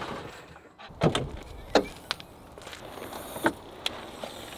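Metal latches and a door clunk.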